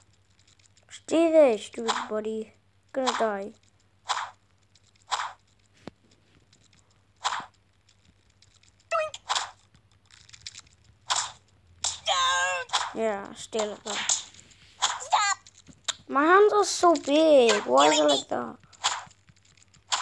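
A young boy speaks with animation close to the microphone.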